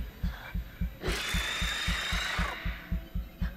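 A creature lets out a loud, rasping shriek.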